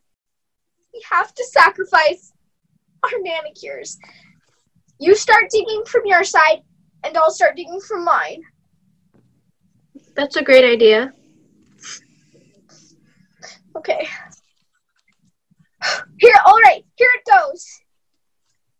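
A teenage girl talks with animation over an online call.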